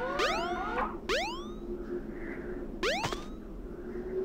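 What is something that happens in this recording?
Bright electronic chimes ring out from a video game.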